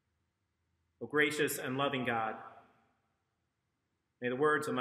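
A man speaks calmly and clearly into a microphone, reading out.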